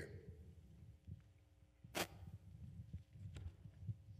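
Pages of a book rustle as a man turns them.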